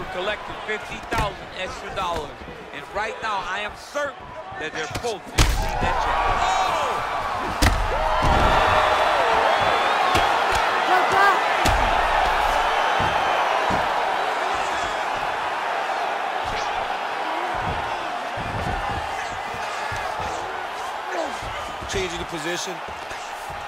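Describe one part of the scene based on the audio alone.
Punches and kicks thud against bodies.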